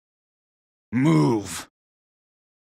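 A man growls a short word.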